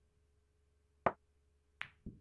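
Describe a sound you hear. A pool cue strikes a ball with a sharp click.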